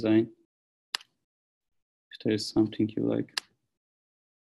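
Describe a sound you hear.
A young man speaks calmly into a close microphone, in short bursts.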